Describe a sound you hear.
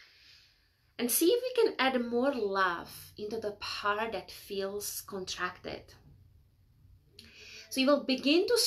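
A woman speaks with animation, close to a microphone.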